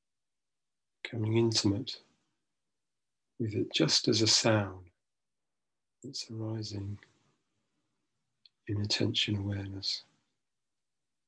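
A middle-aged man speaks slowly and calmly in short phrases with long pauses, heard through an online call.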